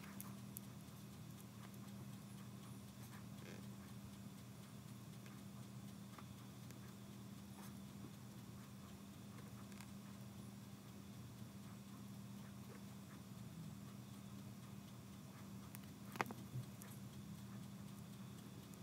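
A craft knife scrapes and clicks softly against rubber.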